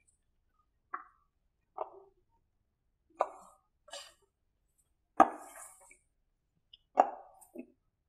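A woman presses paper onto a board with soft taps.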